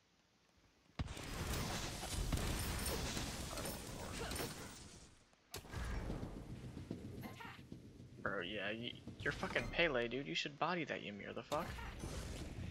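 Game combat sounds clash and whoosh.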